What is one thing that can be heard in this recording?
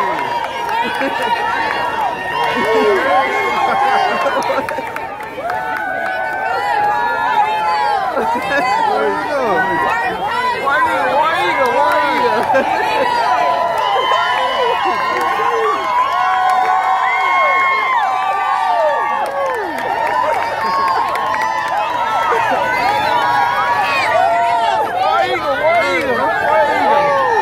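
A large crowd cheers and shouts excitedly close by outdoors.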